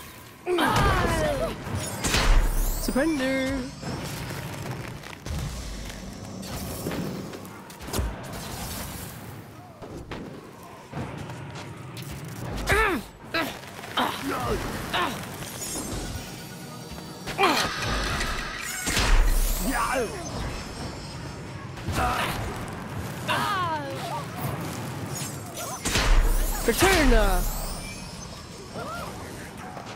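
Magic spells whoosh and crackle in a game.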